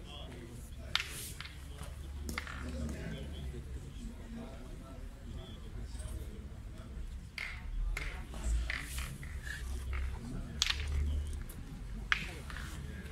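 Metal balls clack sharply against each other on gravel.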